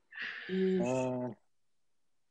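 A man speaks briefly into a webcam microphone.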